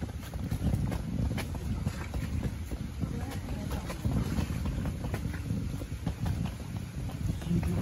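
Footsteps tap steadily on a stone path.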